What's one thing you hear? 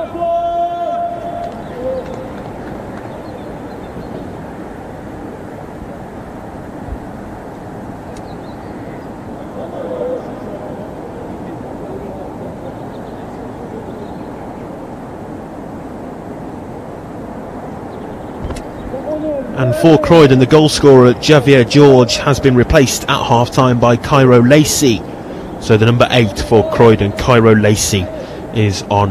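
Young men shout to each other far off across an open pitch.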